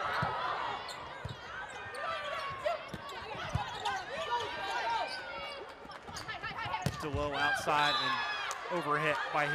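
Sneakers squeak sharply on a hard court, over and over.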